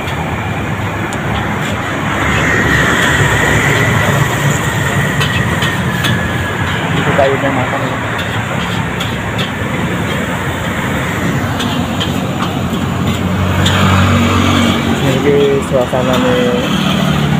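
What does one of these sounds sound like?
An engine rumbles steadily beneath a moving ride.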